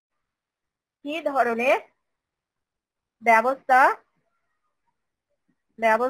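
A woman speaks calmly in short phrases, heard through an online call.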